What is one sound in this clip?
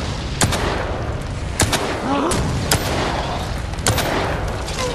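Pistol shots ring out one at a time.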